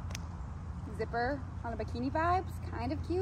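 A young woman speaks briefly outdoors.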